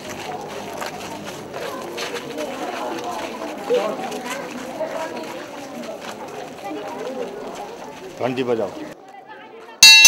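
Children chatter and murmur outdoors.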